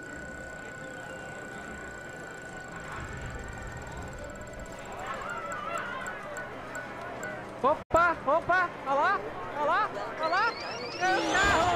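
A prize wheel spins with rapid ticking.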